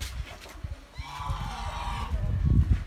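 Geese honk nearby.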